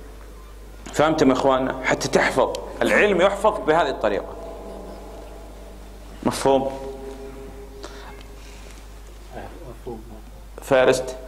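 A man recites in a drawn-out, melodic voice through a microphone, echoing in a large hall.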